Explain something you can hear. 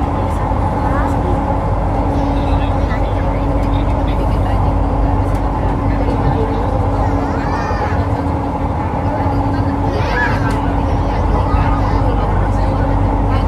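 Train motors hum with a steady whine.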